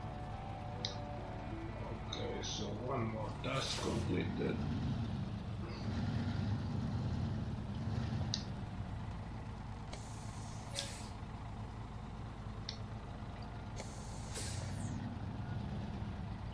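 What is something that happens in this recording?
A heavy truck engine rumbles and revs as it drives.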